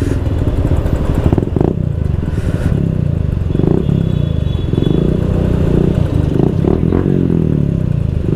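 Motorbike engines idle nearby in traffic.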